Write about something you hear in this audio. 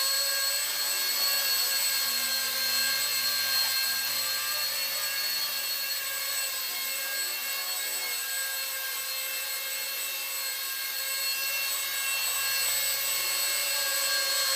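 A small drone's propellers whine steadily up close.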